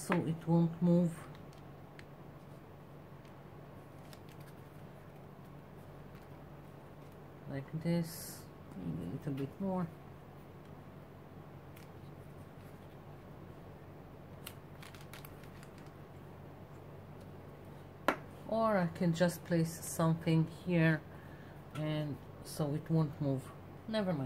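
Paper rustles softly as a hand presses and smooths it.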